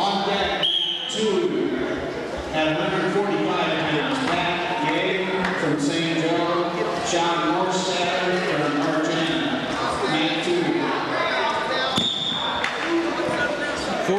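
Wrestlers thump and scuffle on a mat.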